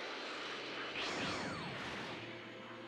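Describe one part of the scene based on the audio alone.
A crackling energy aura fades out with a falling swoosh.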